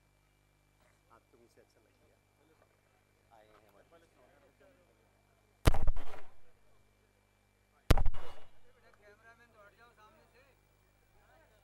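A man speaks into a microphone, heard through loudspeakers outdoors.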